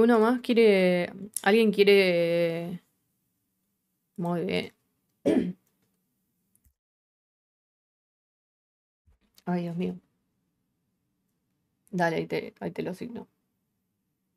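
A young woman speaks with animation into a close microphone, in short bursts with pauses.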